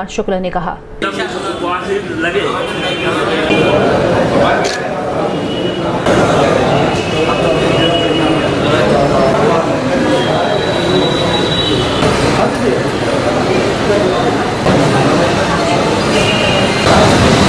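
A large crowd murmurs and chatters in the background.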